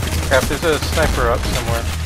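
A pistol fires sharp shots.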